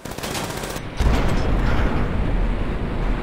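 A car crashes into another with a loud crunch.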